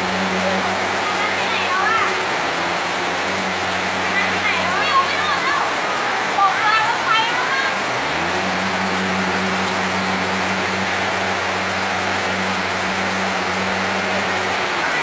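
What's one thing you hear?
Floodwater rushes and churns loudly.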